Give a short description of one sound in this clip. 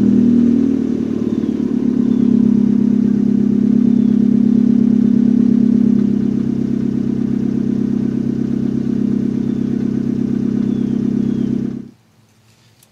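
A car engine idles with a low, steady hum, heard from inside the car.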